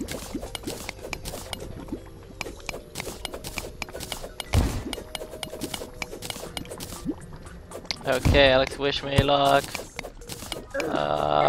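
A pickaxe chips at blocks in rapid, repeated clicks.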